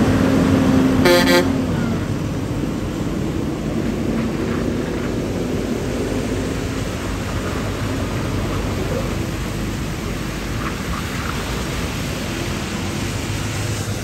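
Large trucks roar past close by.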